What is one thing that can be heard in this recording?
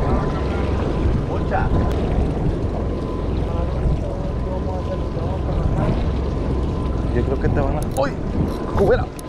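Water laps against the side of a boat.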